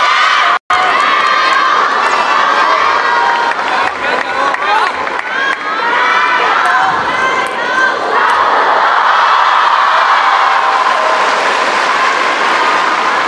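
A ball clicks against paddles and a table in a rally.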